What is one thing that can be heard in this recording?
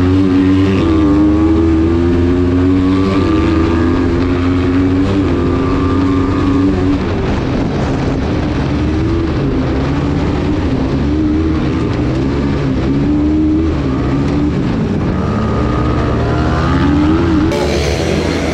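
A racing buggy's engine roars up close, revving up and down.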